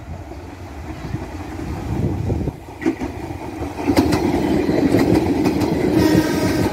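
An electric commuter train rumbles past close by.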